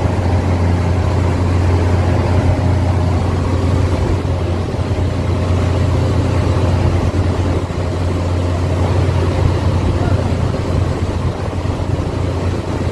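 Water rushes and splashes as a ship's bow wave breaks.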